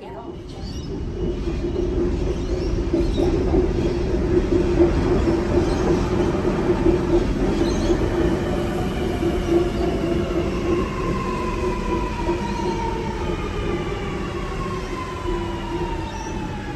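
A train rolls in, its motors whining lower as it slows.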